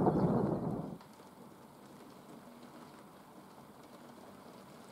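Rain patters softly on a window.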